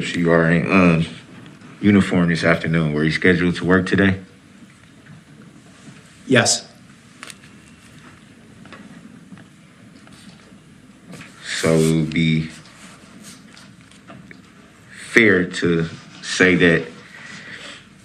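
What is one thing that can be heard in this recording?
A man speaks slowly and haltingly through a microphone, pausing often.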